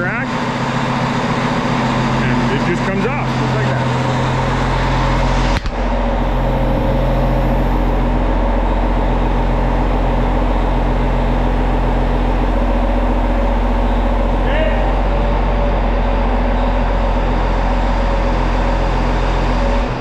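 A large tractor engine idles with a steady low rumble, echoing in a large hall.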